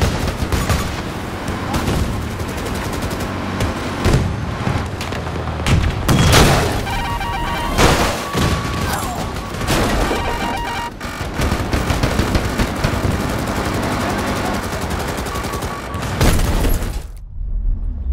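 A heavy gun fires repeatedly.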